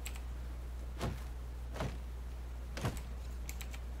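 An axe chops into wood with a few sharp thuds.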